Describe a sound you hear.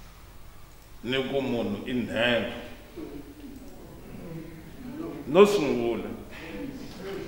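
A man speaks calmly, heard through a microphone.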